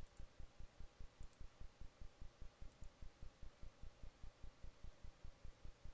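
Small hooves patter quickly in a steady rhythm.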